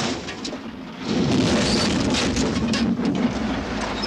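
Rocks and debris crash and tumble down a slope.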